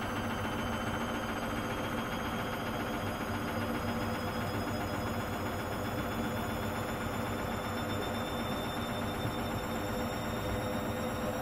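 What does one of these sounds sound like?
A washing machine drum turns with a steady hum and whine.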